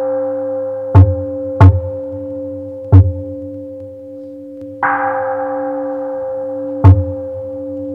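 A large drum booms as it is struck with a padded mallet, in an echoing hall.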